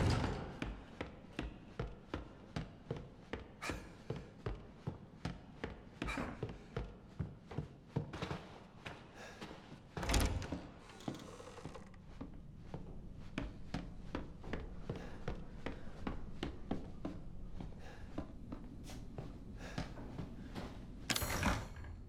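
Footsteps thud steadily across a creaking wooden floor.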